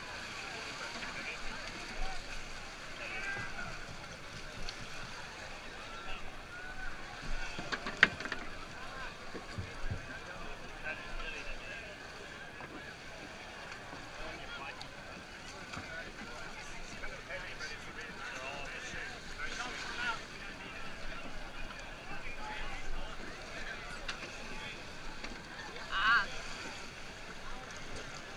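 A crowd of people talk and call out nearby, outdoors.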